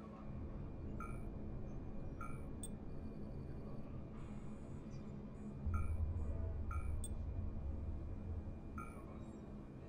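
Soft electronic menu beeps sound now and then.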